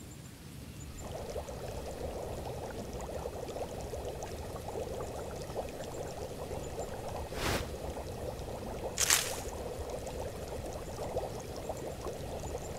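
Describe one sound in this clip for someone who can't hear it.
A pot of liquid bubbles and simmers steadily.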